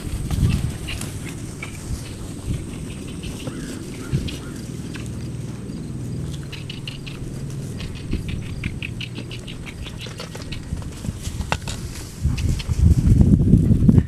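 A horse's hooves thud on grass as it trots.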